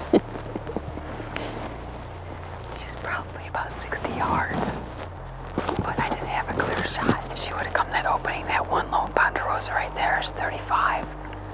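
A woman whispers quietly close to a microphone.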